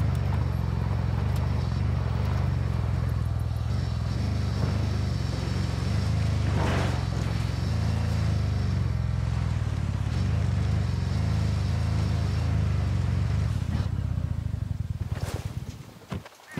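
Tyres roll over rough dirt and grass.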